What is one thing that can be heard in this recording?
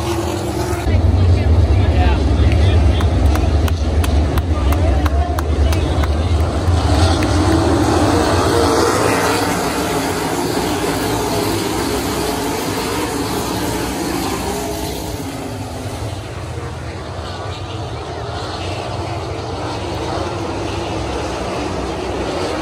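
Sprint car engines roar loudly as the cars race past.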